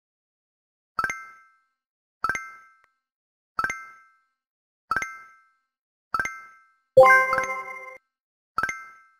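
Short bright chimes sound one after another at an even pace.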